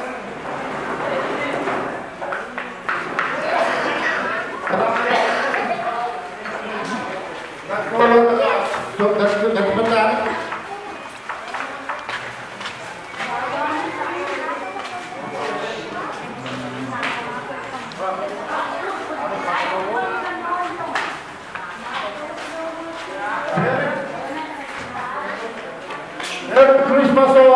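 A man speaks with animation through a microphone and loudspeakers in an echoing hall.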